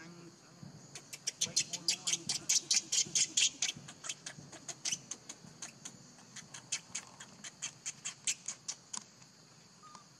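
A baby monkey screeches in rapid, shrill cries close by.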